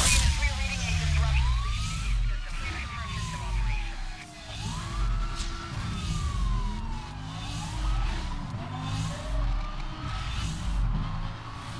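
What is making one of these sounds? Police sirens wail nearby.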